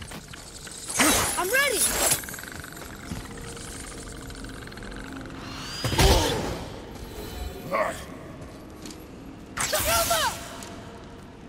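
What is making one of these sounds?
A glowing portal whooshes and swirls loudly.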